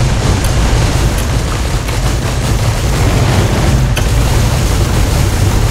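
Explosions boom and crackle in rapid bursts.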